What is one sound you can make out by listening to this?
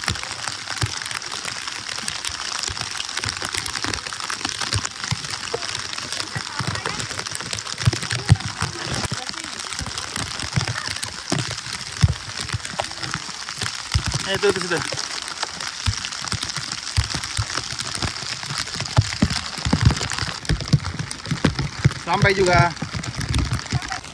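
Rain jackets flap and rustle in the wind.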